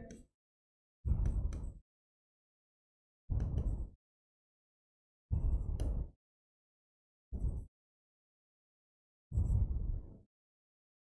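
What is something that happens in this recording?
A marker scrapes on a board.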